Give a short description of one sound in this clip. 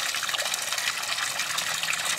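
A small fountain splashes steadily into a pond.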